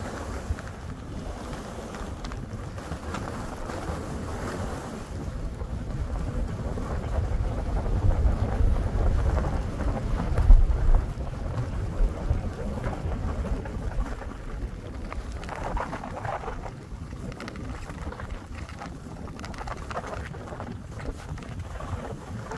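Skis hiss and scrape over snow close by.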